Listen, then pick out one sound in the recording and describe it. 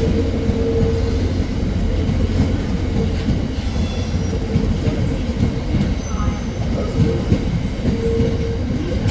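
Freight wagons rumble and clatter steadily over the rails close by.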